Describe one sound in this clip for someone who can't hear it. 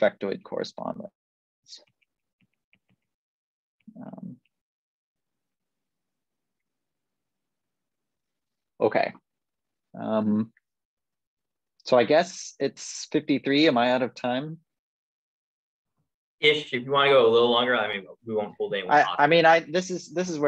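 A young man speaks calmly over an online call, in bursts with pauses.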